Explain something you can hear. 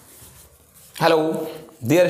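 A young man speaks loudly and close by.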